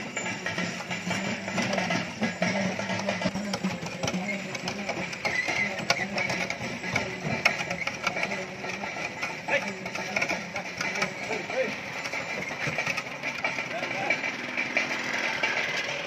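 A wooden cart rolls along with creaking, rumbling wheels.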